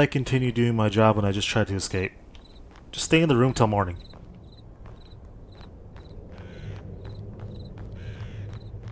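Footsteps crunch on a stony path.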